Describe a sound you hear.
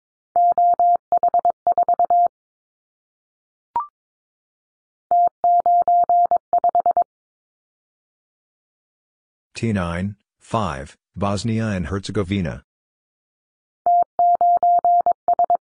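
Morse code beeps sound in quick bursts from a telegraph key.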